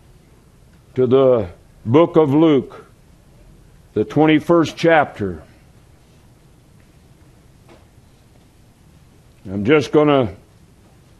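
A middle-aged man speaks slowly and deliberately through a microphone, with pauses between phrases.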